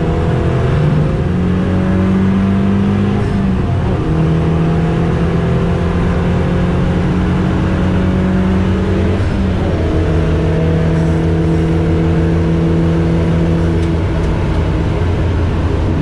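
Tyres rumble on the track at speed.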